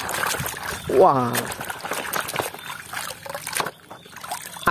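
Muddy water splashes and sloshes as a toy truck is dunked in it.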